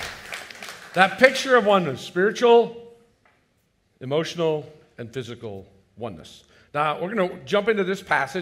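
An older man speaks with animation through a microphone in an echoing hall.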